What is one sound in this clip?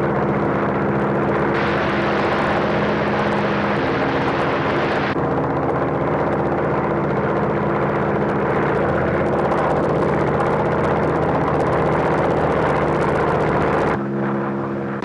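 A radial-engine biplane drones in flight.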